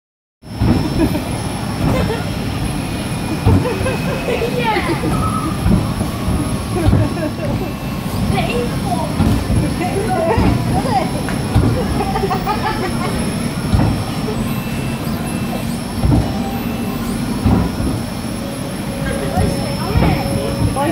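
A mechanical ride whirs and thumps as it bucks and spins.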